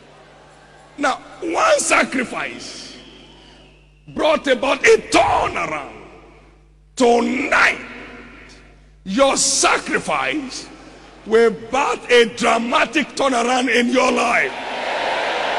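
A man preaches loudly and with passion through a microphone, in bursts, in a large echoing hall.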